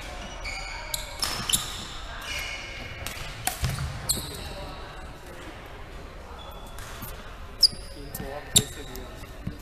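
Rackets smack a shuttlecock back and forth.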